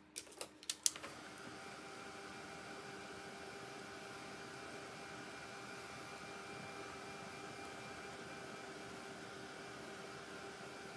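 A hair dryer blows with a steady whirring hum.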